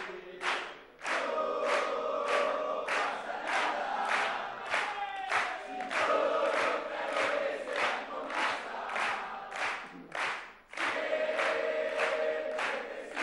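A crowd chants loudly in unison.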